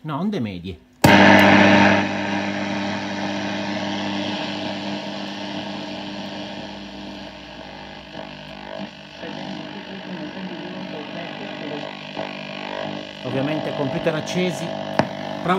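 An old valve radio hums and hisses with static.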